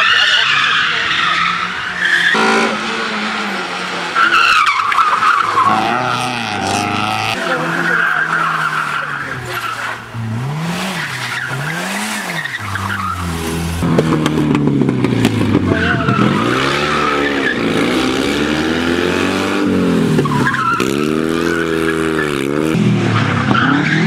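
Tyres squeal on tarmac through the bends.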